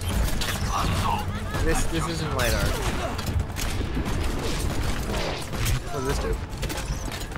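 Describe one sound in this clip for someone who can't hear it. A gun fires in quick bursts of shots.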